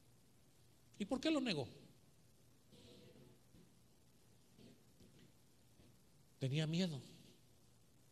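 A middle-aged man speaks with emphasis through a microphone in a room with some echo.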